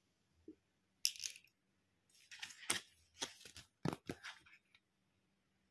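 Stiff paper pages rustle and flip.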